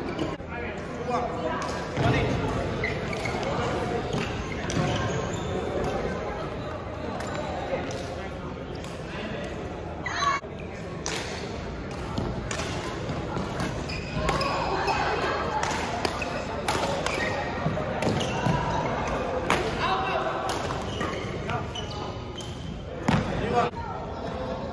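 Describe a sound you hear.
Shoes squeak and patter on a hard court floor.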